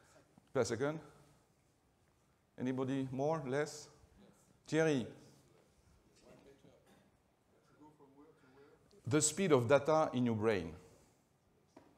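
A middle-aged man speaks with animation through a microphone in a large hall, pausing between phrases.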